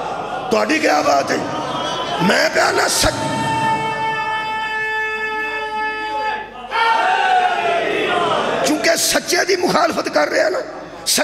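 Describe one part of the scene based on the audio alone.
A middle-aged man speaks passionately into a microphone, his voice loud and echoing through loudspeakers, with long drawn-out sung phrases.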